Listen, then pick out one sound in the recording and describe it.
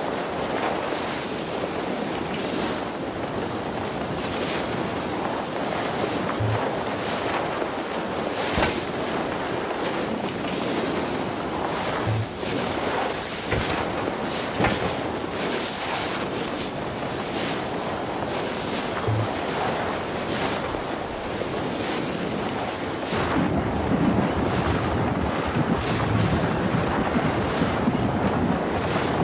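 Wind rushes past at high speed.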